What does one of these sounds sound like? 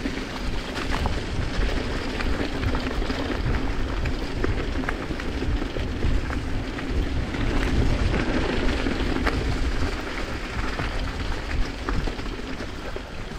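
Wind rumbles against a microphone.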